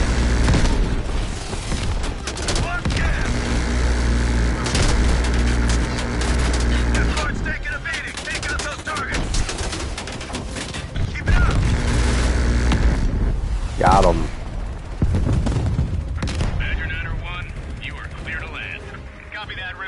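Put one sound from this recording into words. A helicopter's rotor thumps and drones steadily.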